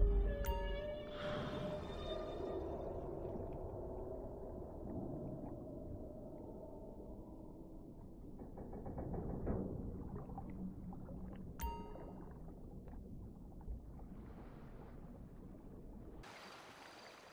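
Water murmurs and bubbles in a low, steady rumble underwater.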